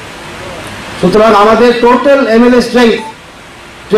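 An elderly man speaks loudly through a microphone.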